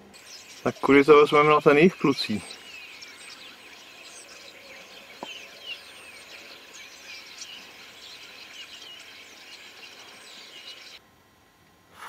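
A flock of starlings chatters and twitters outdoors.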